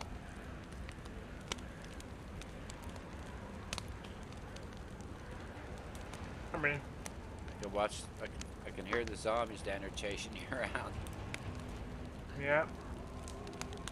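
A small fire crackles softly.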